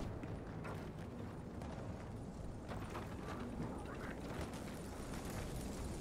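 Heavy footsteps thud on hard ground.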